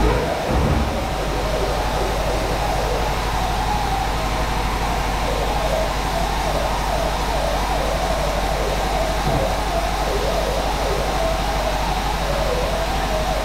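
An electric welder buzzes and crackles steadily close by.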